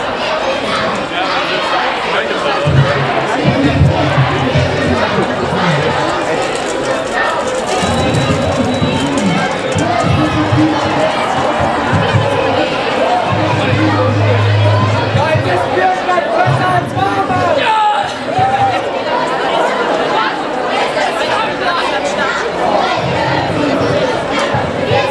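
A large crowd of people chatters loudly outdoors.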